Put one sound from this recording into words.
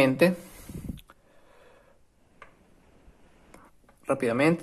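Wooden pieces click and knock softly together.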